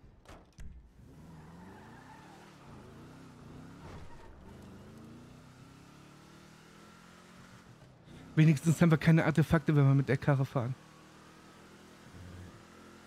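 A car engine starts and revs as the car drives off.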